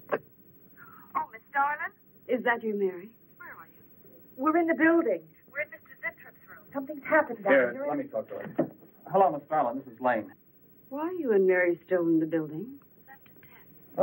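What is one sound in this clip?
A woman speaks calmly into a telephone.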